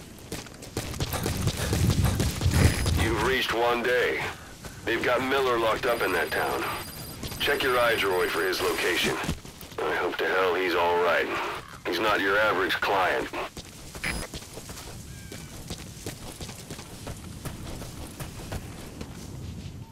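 Footsteps crunch quickly on dry, rough ground.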